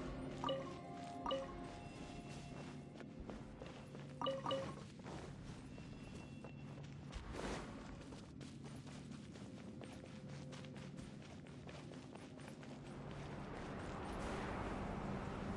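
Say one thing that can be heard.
Quick footsteps run over stone.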